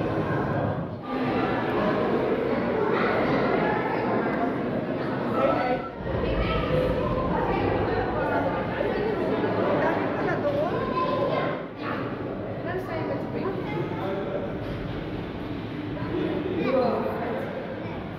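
Children and adults chatter nearby in an echoing hall.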